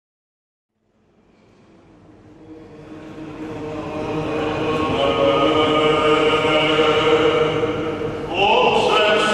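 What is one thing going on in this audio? A choir of men chants together in a large echoing church, fading in and growing louder.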